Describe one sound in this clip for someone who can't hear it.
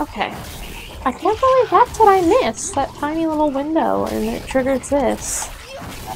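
A young woman talks into a close microphone.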